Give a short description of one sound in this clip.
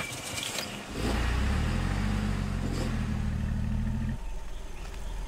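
A car engine rumbles as a car drives up close.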